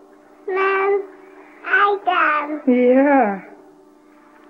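A young toddler talks loudly in a high voice close by.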